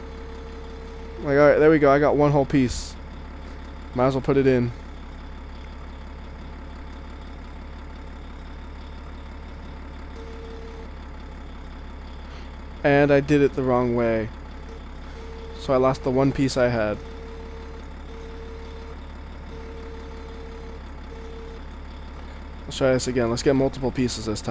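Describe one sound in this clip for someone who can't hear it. A heavy loader's diesel engine rumbles steadily.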